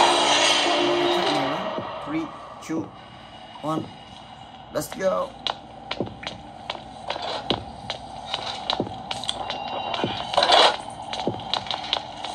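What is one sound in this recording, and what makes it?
Game sound effects play from a small tablet speaker.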